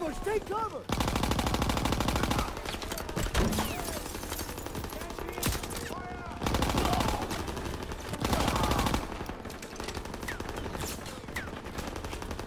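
Rapid gunfire rattles loudly, close by.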